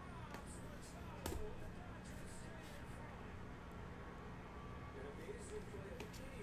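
Plastic card cases click and clack in hands.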